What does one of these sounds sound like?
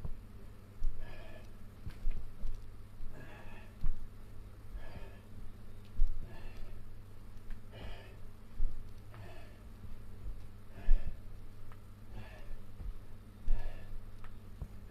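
A man breathes out hard in a steady rhythm while exercising.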